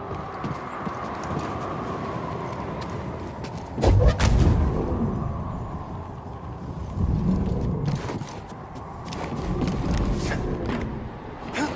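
A deep rumble rolls through an echoing space.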